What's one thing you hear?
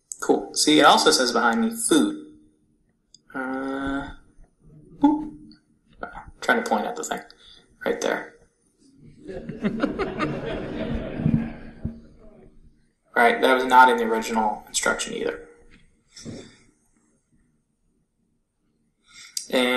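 A man talks with animation over an online call.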